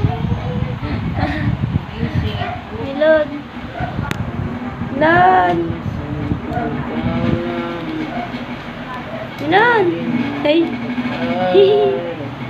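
A woman talks playfully in a high, sing-song voice close by.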